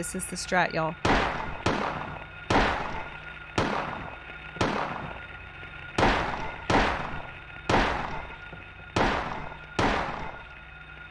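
Heavy blows thud again and again at a steady pace.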